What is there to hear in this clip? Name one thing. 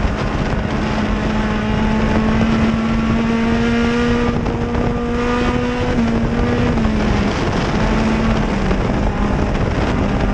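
A race car engine roars loudly at high revs, shifting pitch as the car slides through the turns.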